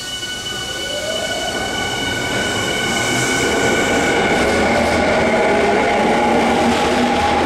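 A train's brakes squeal.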